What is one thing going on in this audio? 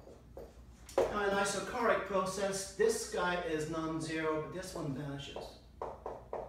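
A man speaks calmly, as if lecturing, close by.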